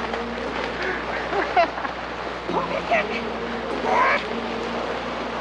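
Fat bike tyres crunch and hiss over packed snow.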